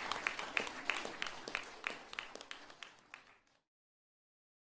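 An audience claps in rhythm in a large hall, then fades away.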